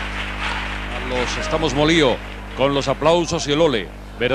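A group of men sings together on a stage, loud and close.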